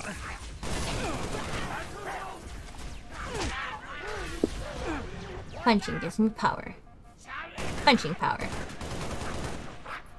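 Gunfire from a rifle rattles in bursts.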